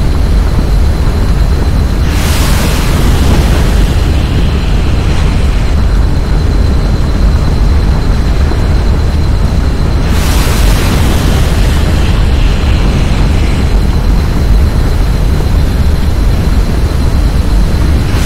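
A fire hose sprays water with a steady hiss.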